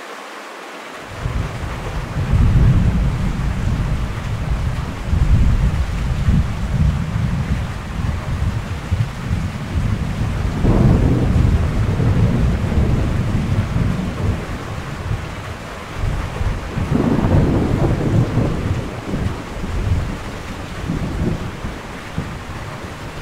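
Strong wind roars and gusts outside.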